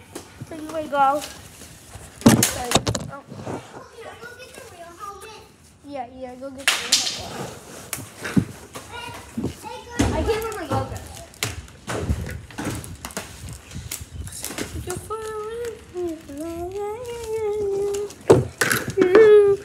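A boy talks close to the microphone with animation.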